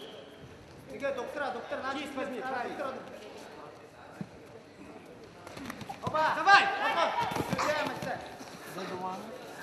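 Spectators shout and call out in a large echoing hall.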